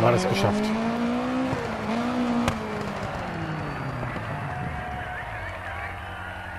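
A rally car engine revs and slows as the car brakes to a stop.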